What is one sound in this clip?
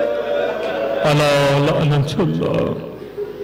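A man chants in a strong, sustained voice through a microphone.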